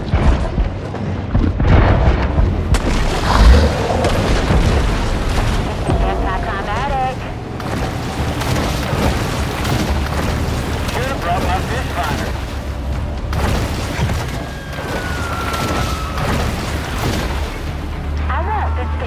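Water splashes and churns as a shark thrashes through it.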